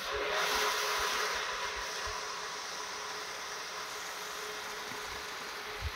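Water gushes from a hose into a tub and splashes.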